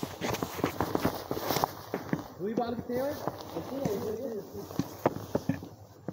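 A hockey stick taps a ball in quick, sharp knocks.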